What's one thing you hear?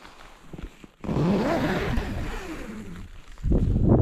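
A tent zip rustles open.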